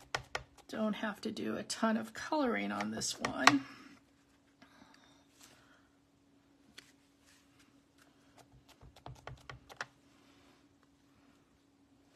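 A stamp is pressed down onto card with a soft thud.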